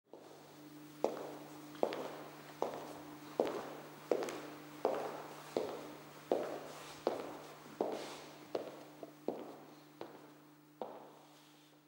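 Hard-soled shoes step slowly and steadily on a wooden floor, echoing in a large room.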